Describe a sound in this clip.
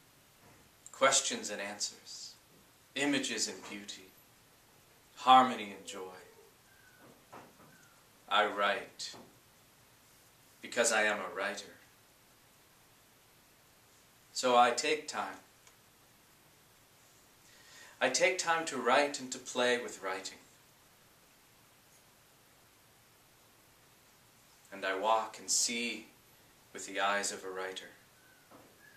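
A man speaks calmly and expressively close by, in short phrases with pauses.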